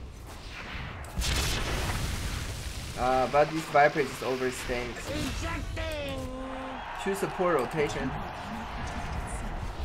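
Magic blasts and clashing weapons crackle in a fight.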